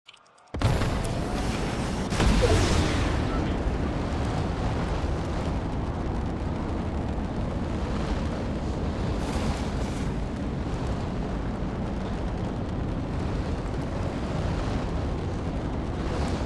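An engine roars steadily as a motorbike speeds over rough ground.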